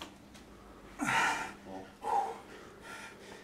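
A man strains and grunts.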